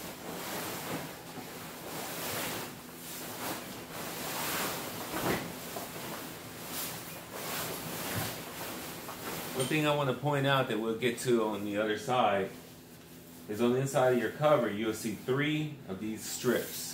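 Fabric and plastic sheeting rustle and crinkle as a boat cover is handled.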